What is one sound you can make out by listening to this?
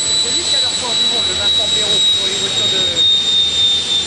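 A crowd chatters in the open air.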